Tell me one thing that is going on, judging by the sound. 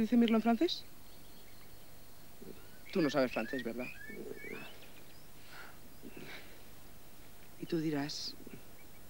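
A young woman speaks softly and tenderly up close.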